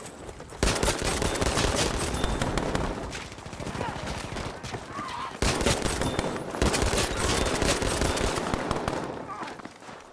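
Guns fire in rapid, loud bursts of shots.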